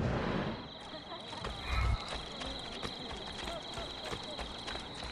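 Footsteps tread quickly on cobblestones.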